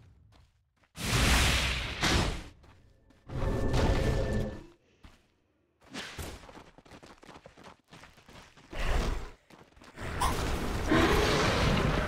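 Magic blasts and clashing weapons crash in bursts during a fight.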